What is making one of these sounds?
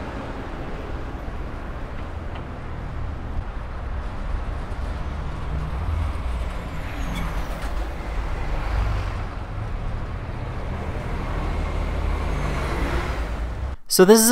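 Car and truck engines rumble close by in heavy traffic.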